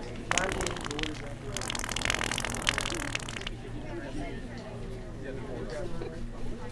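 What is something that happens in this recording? A background crowd murmurs.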